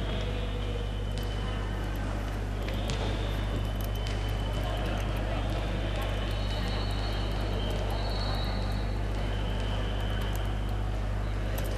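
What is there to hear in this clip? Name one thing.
A woman talks to a group in an echoing hall.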